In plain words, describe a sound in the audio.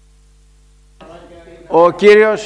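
An elderly man speaks into a microphone, reading out.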